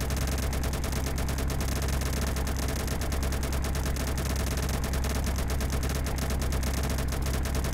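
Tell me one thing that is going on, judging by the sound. Propeller engines drone steadily and loudly.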